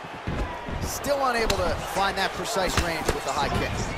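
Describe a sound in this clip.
Punches thud against a body.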